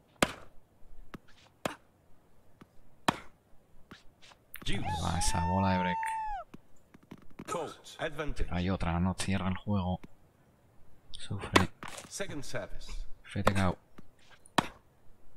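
A tennis ball is struck back and forth with sharp pops.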